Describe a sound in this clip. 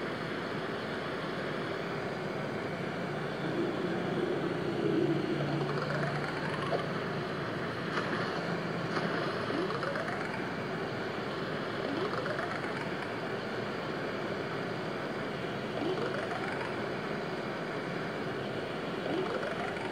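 Rushing water roars steadily from a phone's small speaker.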